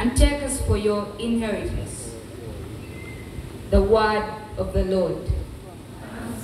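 A woman speaks in short phrases through a loudspeaker.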